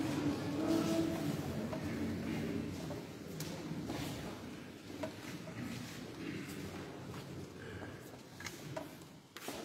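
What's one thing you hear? A men's choir sings together in a large echoing hall.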